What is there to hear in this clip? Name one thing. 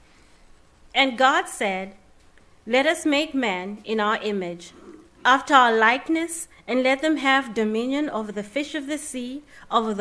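A woman reads out calmly through a microphone.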